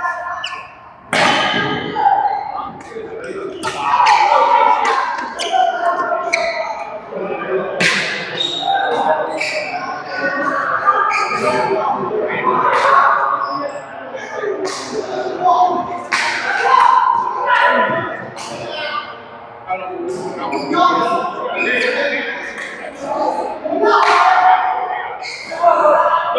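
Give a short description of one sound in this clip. Badminton rackets strike a shuttlecock in a rally.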